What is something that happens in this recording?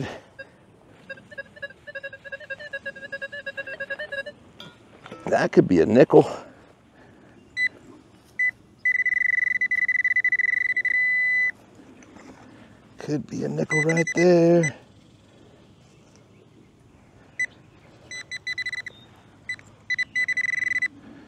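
A metal detector beeps with steady electronic tones.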